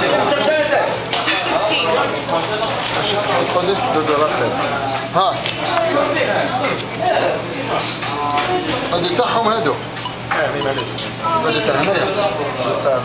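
A woman answers from across a counter.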